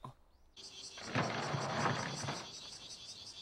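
A sliding door rattles open.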